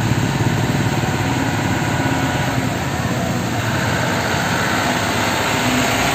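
Truck tyres splash through floodwater.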